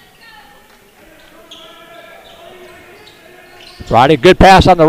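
Young men call out faintly in an echoing gym.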